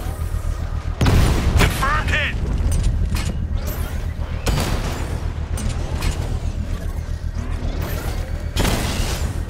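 Gunfire and explosions bang in bursts.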